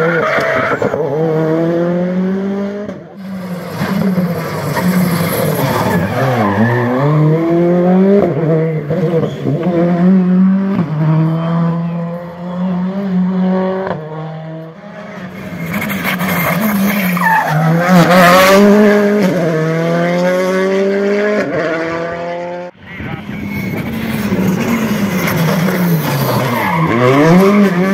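A rally car engine roars loudly, revving hard and shifting gears as it speeds past.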